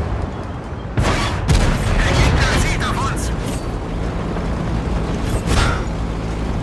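A tank gun fires with a loud boom.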